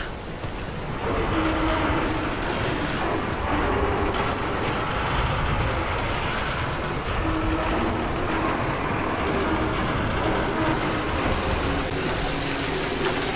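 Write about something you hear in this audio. A metal winch cranks and rattles as a cable winds in.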